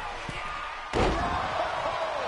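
A body slams hard onto a ring mat with a loud thud.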